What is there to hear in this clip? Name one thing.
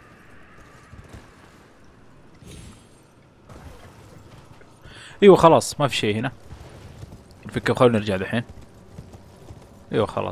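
A horse's hooves clop steadily on stone.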